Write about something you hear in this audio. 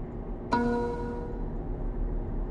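A soft chime rings out and fades.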